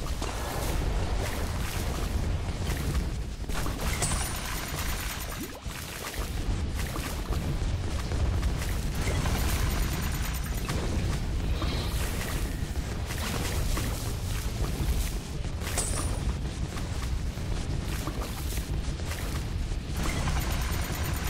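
Game towers fire dense rapid pops, zaps and explosions.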